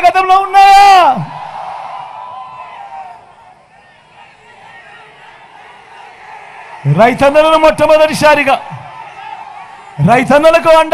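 A man speaks forcefully into a microphone, amplified over loudspeakers outdoors.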